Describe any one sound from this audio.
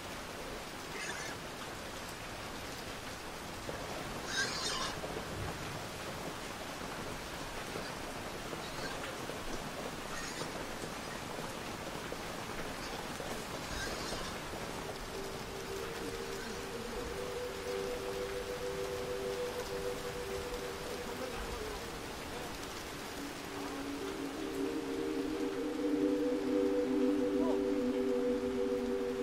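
Steady rain pours down outdoors.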